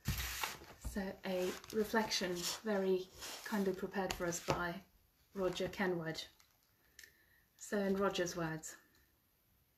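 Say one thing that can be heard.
A woman speaks calmly and warmly, close to a microphone.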